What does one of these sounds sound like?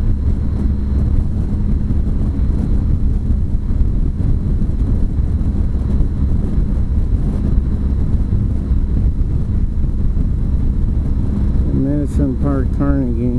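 A motorcycle engine hums steadily at highway speed.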